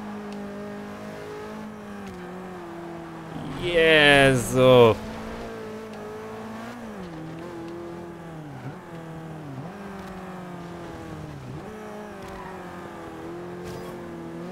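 A racing car engine roars, rising sharply in pitch as it revs hard and dropping with each gear change.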